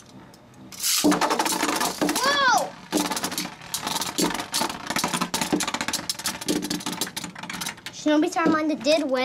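Spinning tops clash and clatter rapidly against each other in a plastic bowl.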